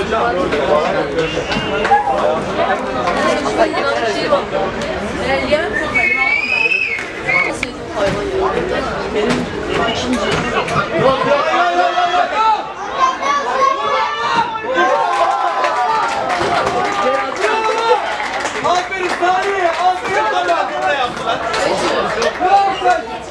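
Men shout to each other outdoors across a sports field.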